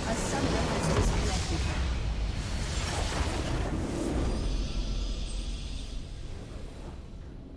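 A huge explosion booms and rumbles, then fades away.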